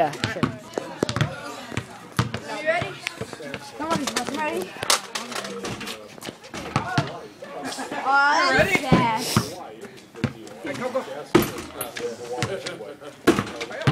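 A basketball bounces on pavement.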